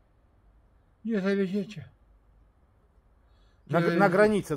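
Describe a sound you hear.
A middle-aged man speaks close by in a calm, slightly drawn-out voice.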